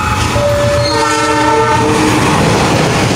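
A train horn blares close by.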